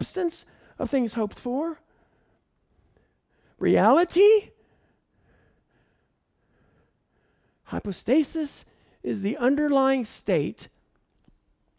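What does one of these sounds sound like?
A man lectures calmly into a microphone, pausing between phrases.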